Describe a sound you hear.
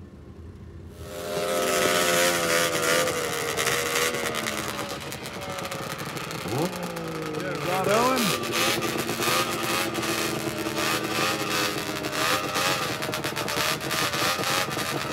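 A snowmobile engine rumbles close by and revs now and then.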